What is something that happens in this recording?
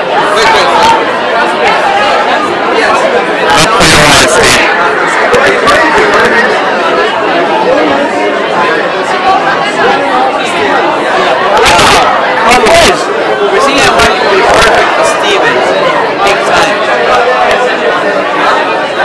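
A crowd chatters loudly all around, in a noisy room.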